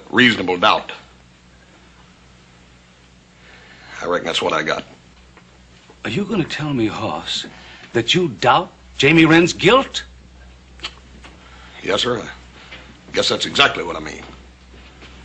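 A man speaks nearby in a low, flat voice.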